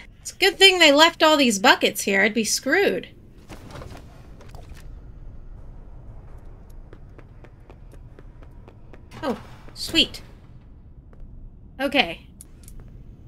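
A young woman talks with animation through a headset microphone.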